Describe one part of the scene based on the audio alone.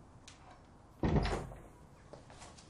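A door shuts with a thud.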